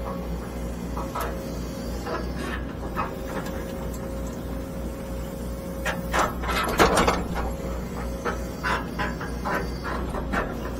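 An excavator bucket scrapes and scoops through dirt and stones.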